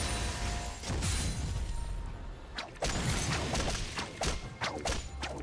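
Game spell effects burst and crackle in a fight.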